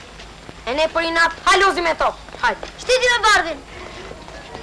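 A boy speaks close by.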